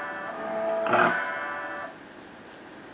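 Upbeat game music plays through a television speaker and then cuts off.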